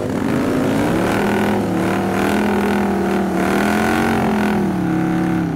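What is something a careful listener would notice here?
A motorcycle's rear tyre screeches as it spins on the tarmac.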